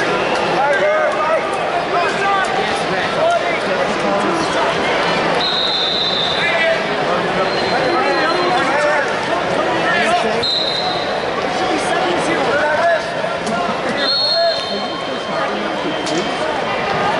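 A crowd murmurs and shouts in a large echoing arena.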